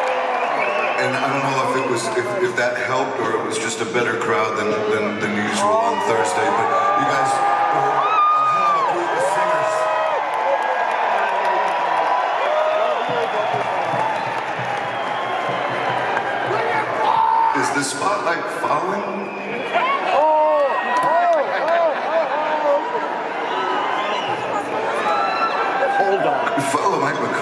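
A man sings into a microphone through loudspeakers in a large echoing hall.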